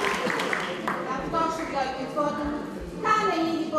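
A man speaks aloud on a stage in a hall.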